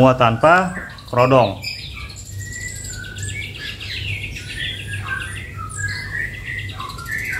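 A small bird chirps and sings in quick, high calls.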